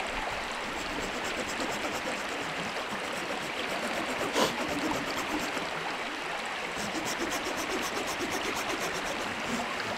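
A knife shaves and scrapes wood in quick short strokes.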